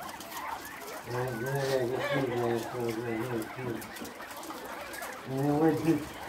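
Chickens cluck nearby.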